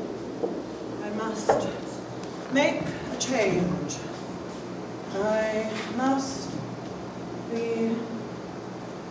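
A woman speaks clearly in a room, pausing between phrases.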